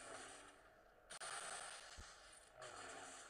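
Electric lightning crackles in a sudden burst.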